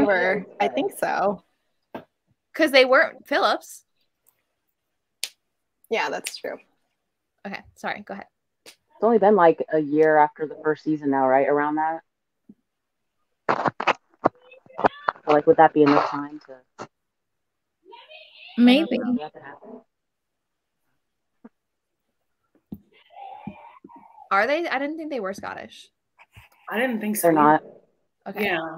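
Several young women talk with animation over an online call.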